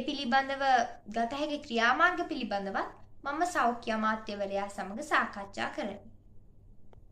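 A teenage girl speaks calmly and clearly, close to the microphone.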